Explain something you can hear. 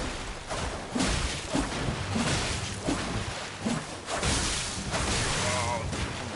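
Blades clash and strike in a fight.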